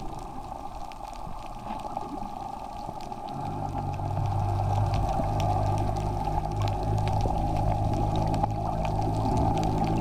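Water hisses and rushes steadily, heard from underwater.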